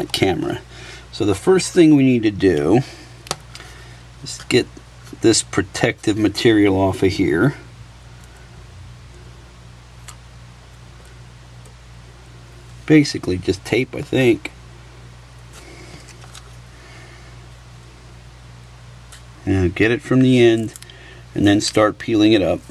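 Small metal parts click softly as tweezers work on them.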